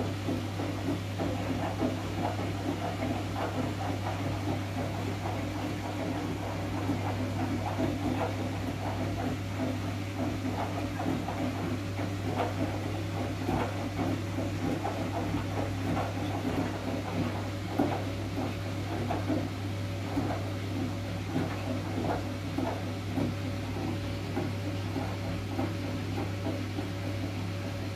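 A motor hums steadily.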